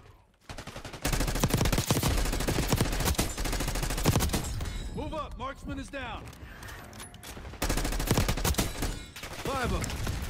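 Rapid gunfire bursts loudly.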